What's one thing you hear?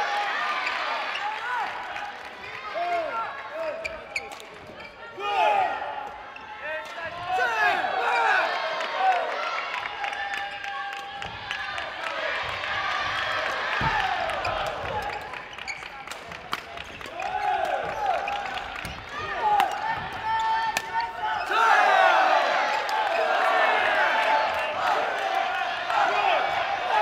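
Sports shoes squeak sharply on a wooden court in a large echoing hall.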